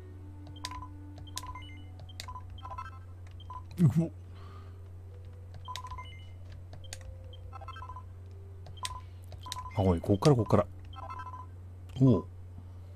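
Short electronic blips chime as menu choices are made.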